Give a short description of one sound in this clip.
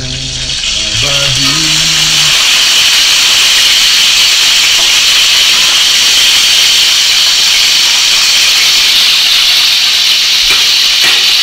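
A fish sizzles as it fries in hot oil in a pan.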